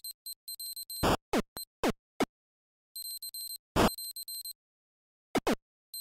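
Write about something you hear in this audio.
Low descending electronic bloops sound as a ball bounces.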